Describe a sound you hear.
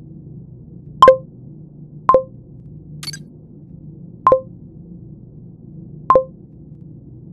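A game chimes as votes are cast.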